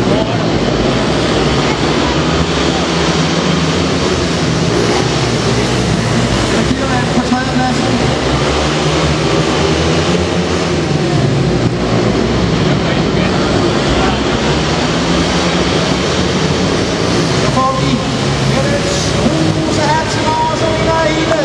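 A crowd cheers in a large hall.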